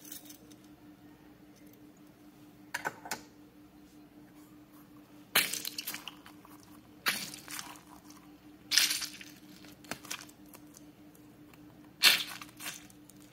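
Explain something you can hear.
Plastic toys clack and rattle against a metal tray.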